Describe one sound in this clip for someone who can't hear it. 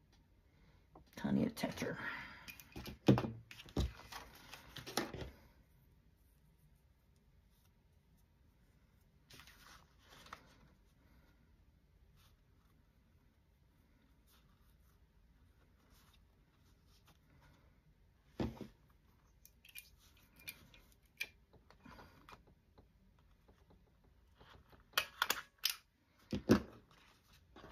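Paper rustles and slides as hands handle it.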